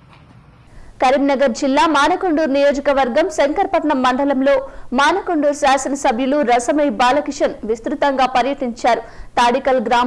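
A young woman reads out the news clearly through a microphone.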